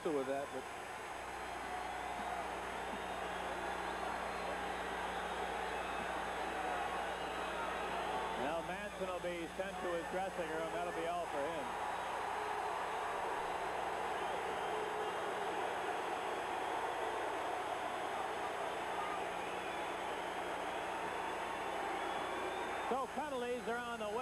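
A large crowd roars steadily in a big echoing arena.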